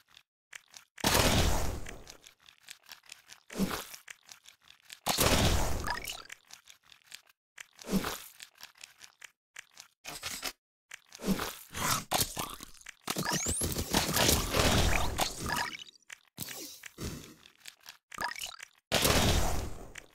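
Video game gunfire and explosions burst in quick succession.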